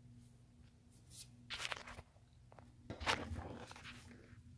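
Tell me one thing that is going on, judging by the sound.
Hands rustle and rub a soft plush toy close by.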